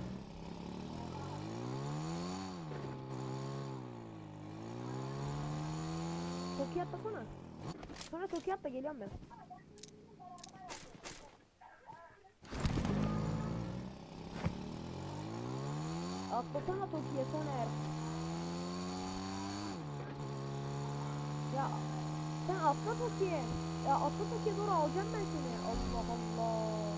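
A motorcycle engine revs and hums, rising and falling in pitch.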